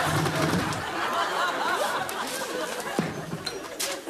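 A chair knocks against a wall.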